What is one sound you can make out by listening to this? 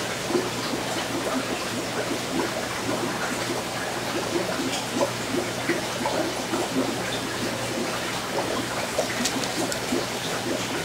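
Air bubbles bubble and gurgle steadily in water.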